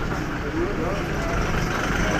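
A vehicle engine idles nearby.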